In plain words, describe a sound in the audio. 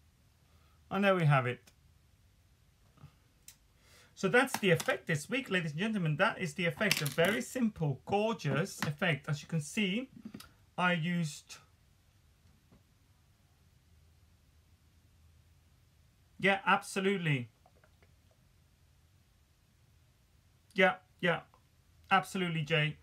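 A man talks calmly and close to the microphone, in bursts with pauses between.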